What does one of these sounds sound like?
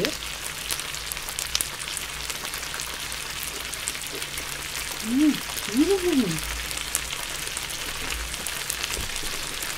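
A young woman chews food close to a microphone.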